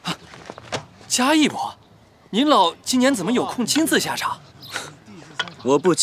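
A young man speaks cheerfully, with a smile in his voice.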